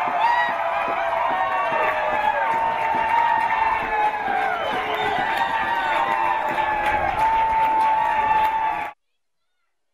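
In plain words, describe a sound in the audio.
A crowd cheers and shouts loudly outdoors.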